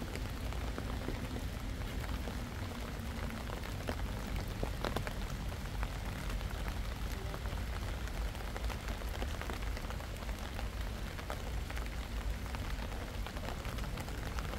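Light rain patters steadily outdoors.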